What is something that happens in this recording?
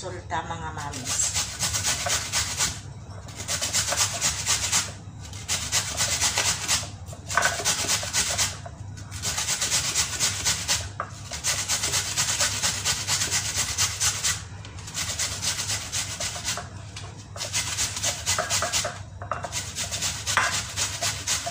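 Food rasps rapidly against a metal grater in quick strokes.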